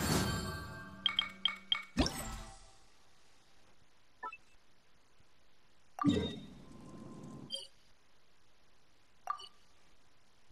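Soft menu clicks and chimes sound.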